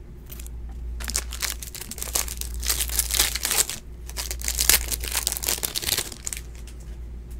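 Plastic wrapping crinkles as cards are peeled apart.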